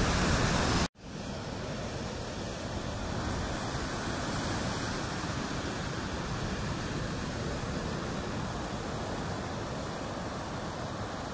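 Surf rolls onto a shore softly in the distance.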